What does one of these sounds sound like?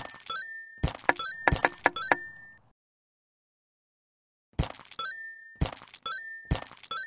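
Bright electronic game chimes and jingles play in quick bursts.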